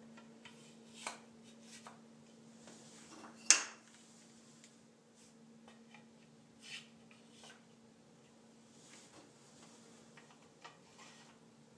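Wooden pieces knock and clack together.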